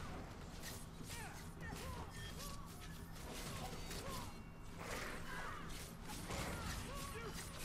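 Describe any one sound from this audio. A large creature roars and grunts.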